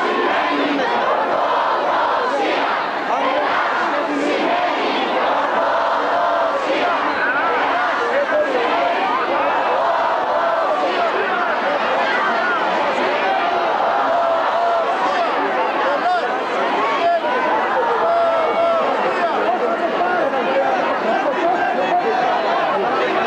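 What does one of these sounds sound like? A large crowd of men and women chatters and murmurs loudly outdoors.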